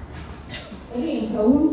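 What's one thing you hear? A woman speaks loudly through a microphone.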